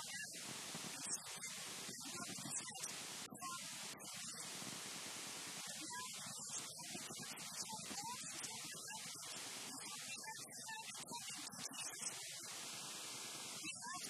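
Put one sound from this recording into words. A woman speaks calmly into a microphone.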